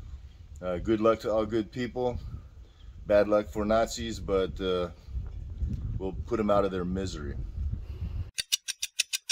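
A middle-aged man speaks calmly, close by, outdoors.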